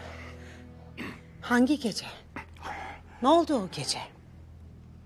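A woman speaks urgently nearby.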